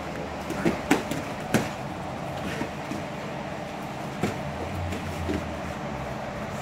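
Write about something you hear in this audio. Bare feet thump and shuffle on a padded mat.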